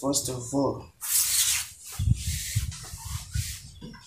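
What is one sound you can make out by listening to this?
Hands brush and rustle fabric.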